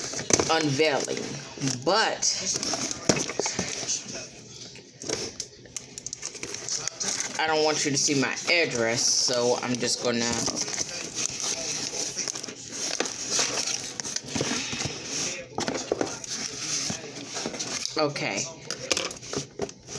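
Cardboard rustles and scrapes.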